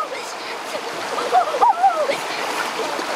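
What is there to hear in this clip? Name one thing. A young boy exclaims with animation close by.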